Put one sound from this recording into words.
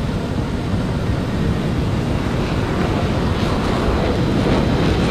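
Jet engines roar steadily and loudly.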